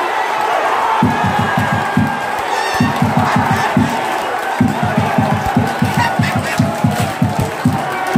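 A crowd claps in rhythm.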